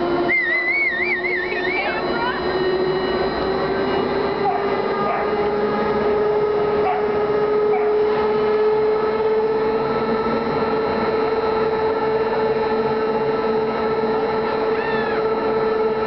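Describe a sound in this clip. A ride's motor hums steadily and slowly rises in pitch.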